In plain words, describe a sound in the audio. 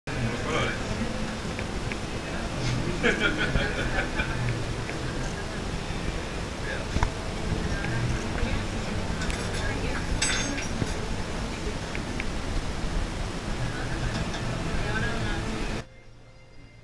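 A crowd of men and women chatter loudly in a busy room.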